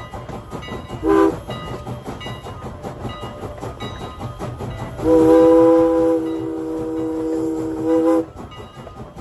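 A steam locomotive's whistle blows a short blast, then a long one.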